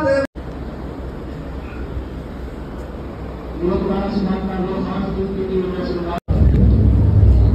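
A crowd murmurs and shuffles in an echoing hall.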